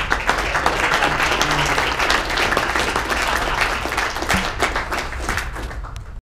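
An audience applauds in a large room, the clapping fading toward the end.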